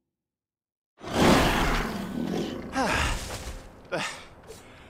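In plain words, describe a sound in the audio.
Fighting sounds burst out again with crashes and swishes.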